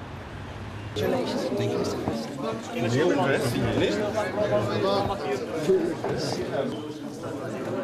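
A crowd of men talk loudly over one another close by.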